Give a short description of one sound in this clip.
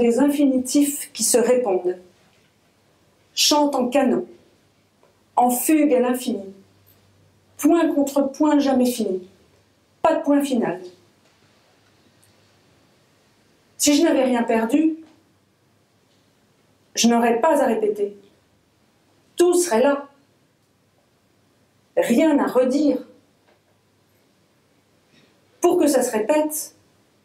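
A woman reads aloud slowly and clearly into a microphone, with long pauses between phrases.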